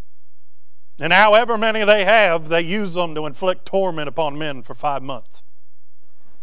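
A man speaks with animation through a microphone in a large room.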